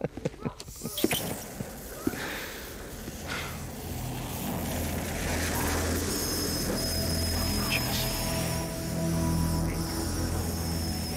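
A blowtorch hisses and roars steadily.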